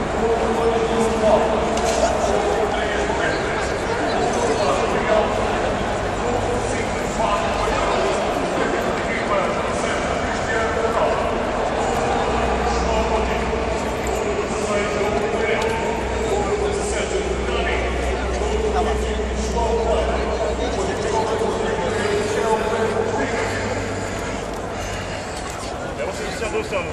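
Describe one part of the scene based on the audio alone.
A crowd of men and women chatters and chants outdoors.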